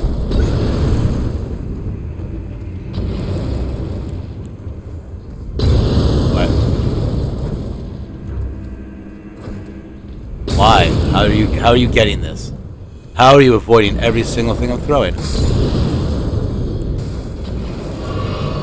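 Fiery explosions boom and roar.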